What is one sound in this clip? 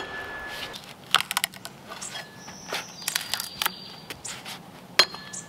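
Wood chips crackle and tap as a log is hewn up close.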